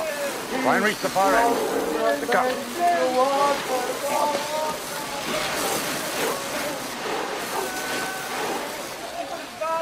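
Water sprays hard from a hose.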